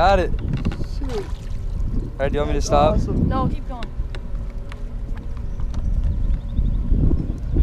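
Water splashes and sloshes as a person wades beside a boat.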